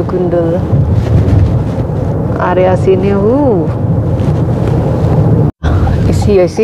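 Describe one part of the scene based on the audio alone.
Tyres hum steadily on a road from inside a moving car.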